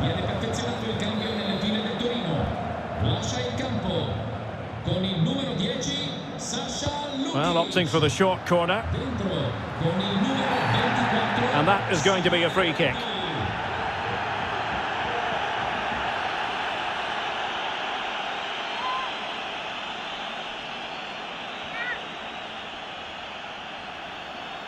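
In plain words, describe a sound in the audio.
A large crowd cheers and murmurs steadily in a stadium.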